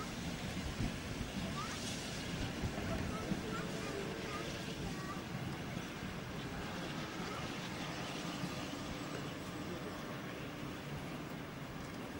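Steel wheels clank and knock over rail joints.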